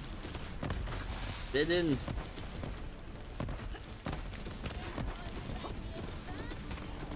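Laser beams zap and crackle.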